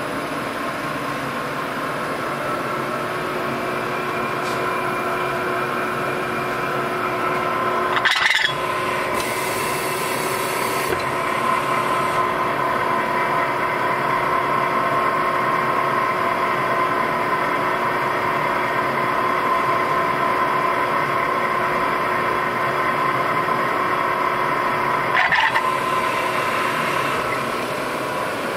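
A milling machine's cutter whirs and hums steadily as it machines metal.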